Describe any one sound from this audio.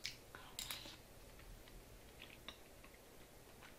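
A young woman chews and slurps food close by.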